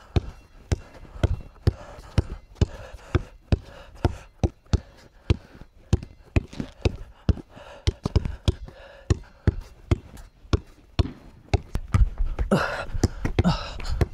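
A basketball bounces rapidly on concrete.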